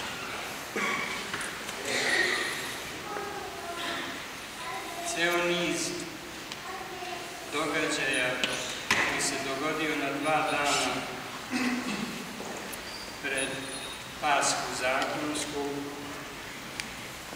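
An elderly man speaks calmly in a large echoing hall.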